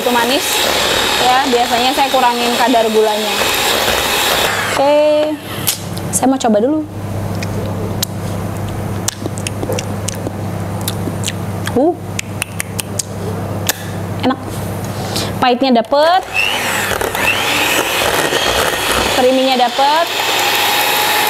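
An electric hand mixer whirs in a bowl.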